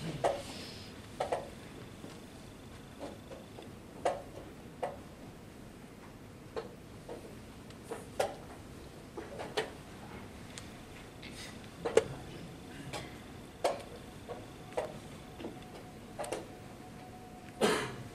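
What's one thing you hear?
Chess pieces tap and knock on wooden boards now and then.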